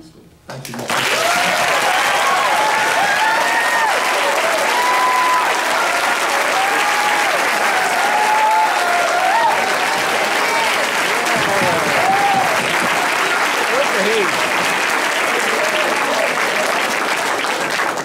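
Many people whoop and shout over the applause.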